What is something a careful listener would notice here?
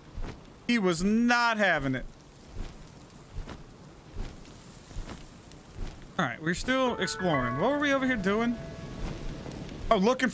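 Large wings flap steadily.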